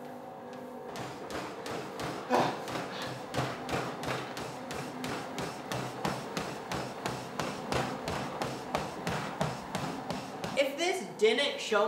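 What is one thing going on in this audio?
Footsteps pound rhythmically on a treadmill belt.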